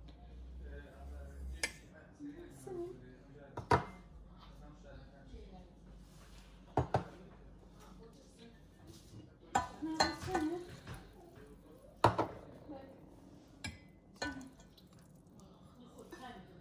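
Liquid pours into a metal bowl.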